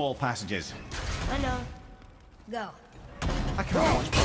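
An axe whooshes through the air.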